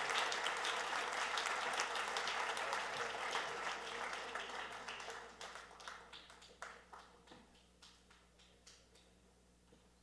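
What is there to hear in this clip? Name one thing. An audience applauds in a large hall, then the clapping fades.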